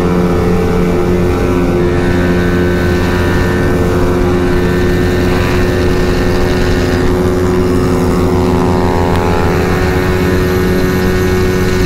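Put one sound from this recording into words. A motorcycle engine hums steadily up close as it rides at speed.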